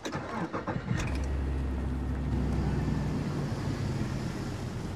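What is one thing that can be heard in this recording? A car engine starts and idles with a steady low hum.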